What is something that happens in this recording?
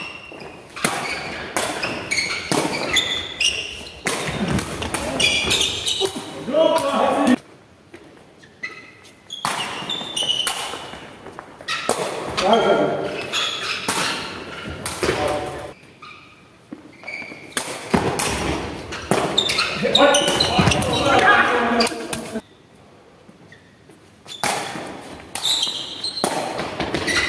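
A ball thumps off feet and bounces on the hard floor in a large echoing hall.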